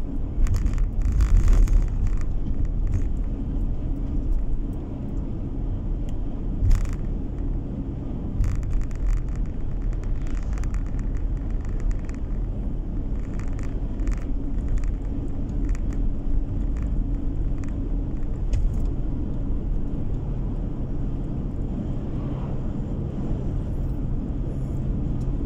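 A car's engine hums steadily and its tyres roll on the road, heard from inside the car.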